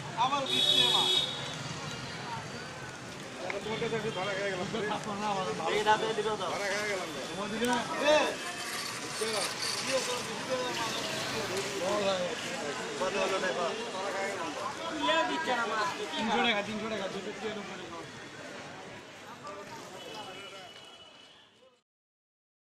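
Men talk and call out nearby in a busy outdoor crowd.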